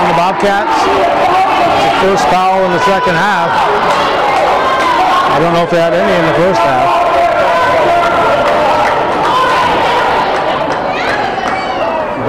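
A crowd of spectators cheers and shouts loudly in an echoing gym.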